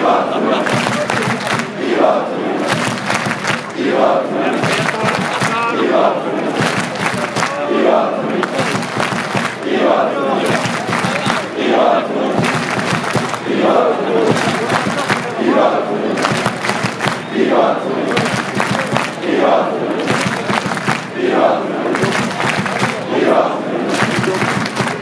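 Fans clap their hands in time with the chant.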